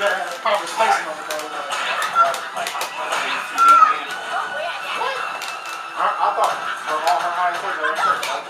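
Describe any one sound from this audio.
Punches, kicks and energy blasts from a fighting game thud and whoosh through a television speaker.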